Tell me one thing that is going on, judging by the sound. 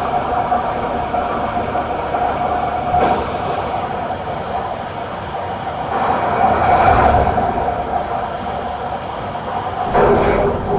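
A diesel truck engine drones while cruising on a highway.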